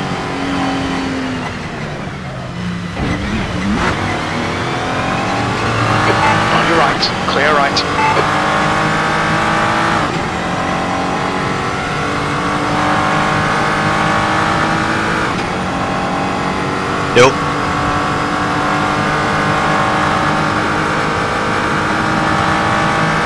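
A racing car engine roars loudly, revving up and dropping as gears shift.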